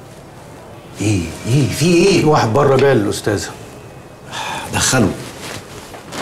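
A man speaks firmly up close.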